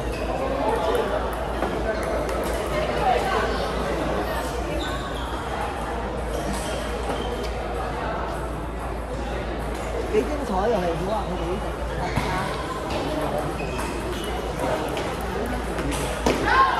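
Table tennis balls click against paddles and tables in a large echoing hall.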